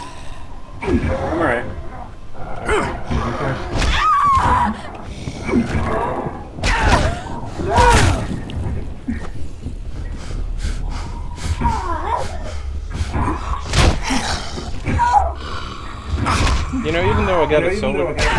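A heavy hammer thuds against a body again and again.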